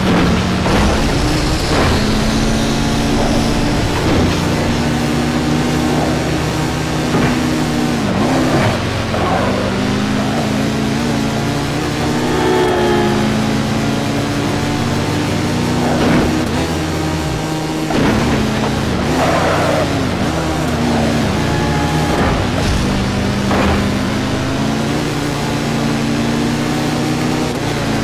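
A motorcycle engine roars steadily at high revs, rising and falling in pitch as gears shift.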